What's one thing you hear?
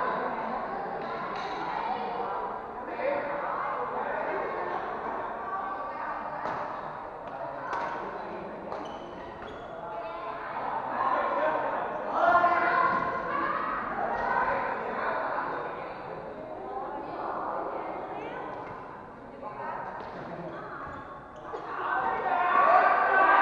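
Badminton rackets hit a shuttlecock with sharp pops.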